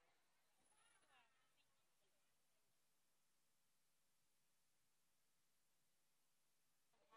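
A crowd murmurs and chatters outdoors.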